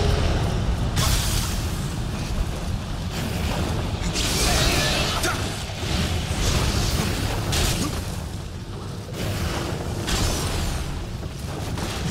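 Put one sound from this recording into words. A blade swishes and clangs in a fight.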